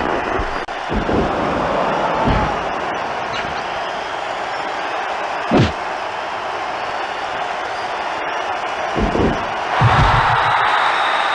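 Heavy thuds of bodies hitting the floor land now and then.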